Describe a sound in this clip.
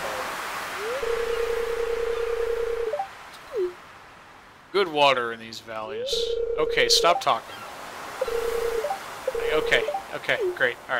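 A game's dialogue plays a steady electronic beeping as text types out.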